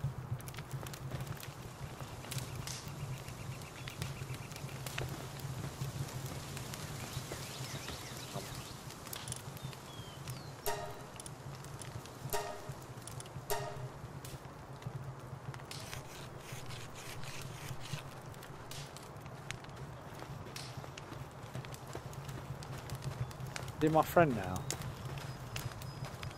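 A campfire crackles steadily.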